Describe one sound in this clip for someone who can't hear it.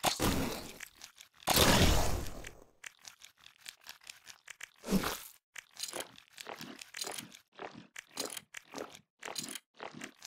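Game projectiles fire and splat with short, quick bursts of sound.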